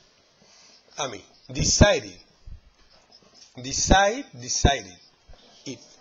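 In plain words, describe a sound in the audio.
A man speaks clearly and calmly, like a teacher explaining, close by.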